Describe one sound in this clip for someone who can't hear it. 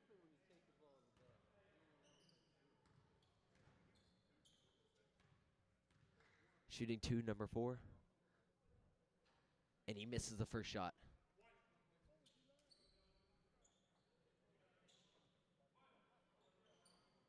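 Sneakers squeak on a hard court in an echoing gym.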